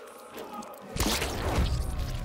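A heavy thud and a splatter burst out.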